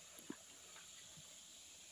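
Water rushes and splashes over rocks.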